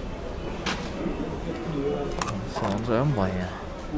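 A car's tailgate clicks open.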